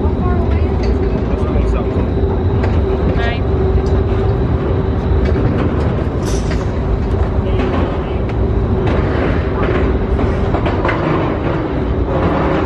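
Footsteps thud on a metal walkway.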